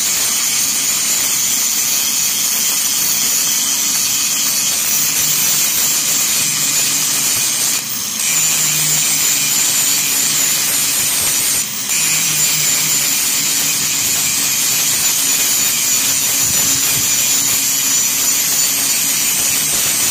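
An angle grinder whines loudly as it grinds metal, with brief pauses.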